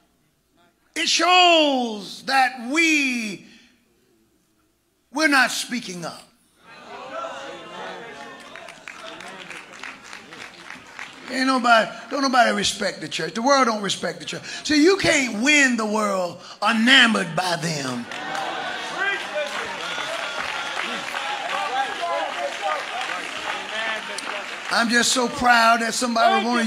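An elderly man preaches with fervour through a microphone in a large echoing hall.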